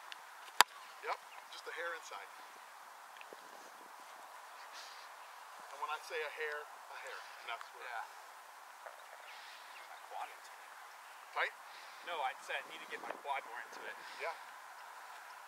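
A man speaks calmly outdoors, fairly close.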